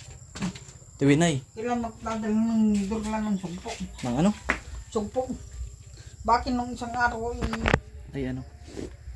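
A middle-aged woman talks nearby in a relaxed way.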